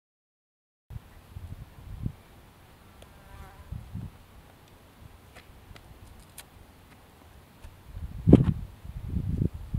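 A climber's shoes scuff and thump against rock, close by.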